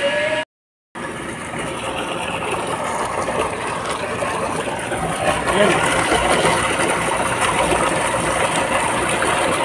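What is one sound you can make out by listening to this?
Water gushes from a pipe and splashes loudly.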